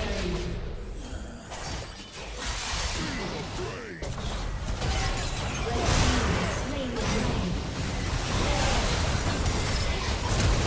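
Spell effects and weapon hits clash and crackle in a busy fight.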